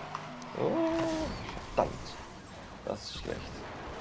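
A car crashes with a loud metallic smash.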